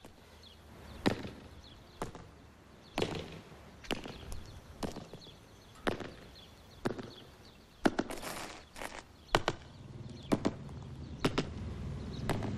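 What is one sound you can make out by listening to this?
Boots stride on hard pavement with steady footsteps.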